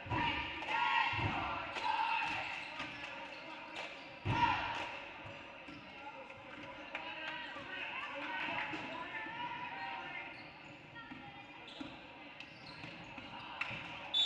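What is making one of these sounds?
A crowd of spectators murmurs and cheers in the background.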